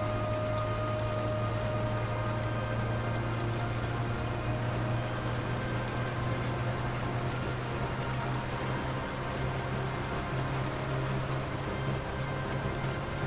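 Car tyres roll over the road.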